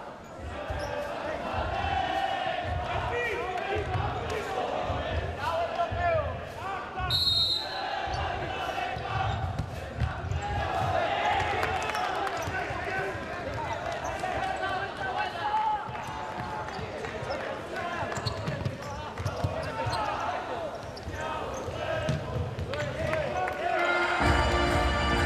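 A large crowd murmurs and shouts in an echoing indoor hall.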